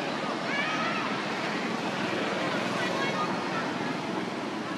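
A baby monkey squeaks softly up close.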